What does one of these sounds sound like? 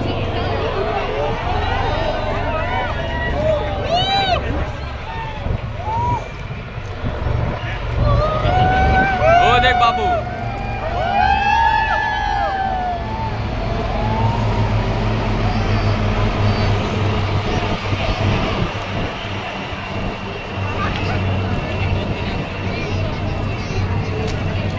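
Helicopters thrum low overhead.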